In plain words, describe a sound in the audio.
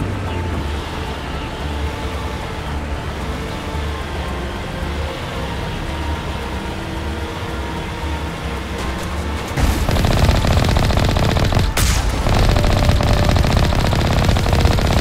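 A vehicle engine hums steadily.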